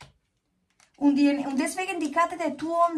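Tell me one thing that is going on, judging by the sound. A woman speaks warmly and close by.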